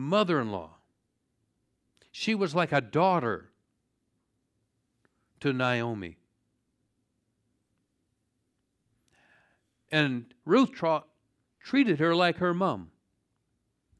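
An older man speaks calmly into a microphone, with pauses between phrases.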